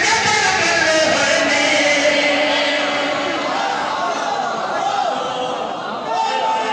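A crowd chants along in rhythm.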